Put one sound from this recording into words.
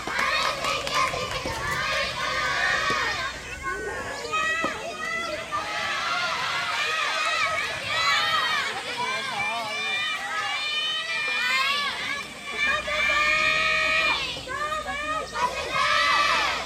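Young women shout and call out across outdoor courts.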